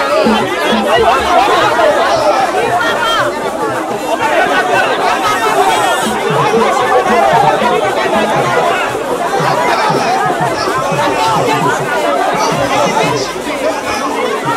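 A large outdoor crowd chatters and calls out loudly all around.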